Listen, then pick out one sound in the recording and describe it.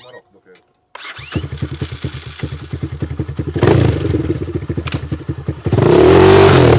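A dirt bike engine starts and idles with a sputtering rumble.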